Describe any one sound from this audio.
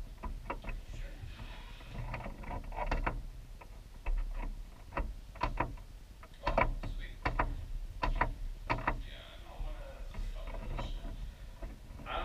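A man talks casually into a nearby microphone.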